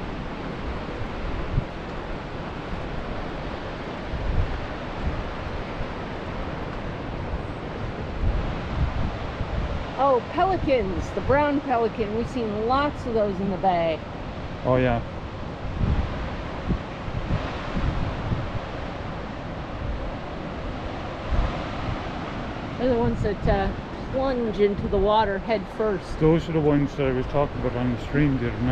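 Wind gusts and buffets outdoors.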